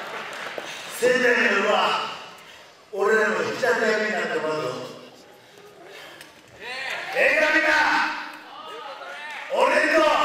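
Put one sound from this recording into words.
A man shouts forcefully into a microphone, echoing through a large hall.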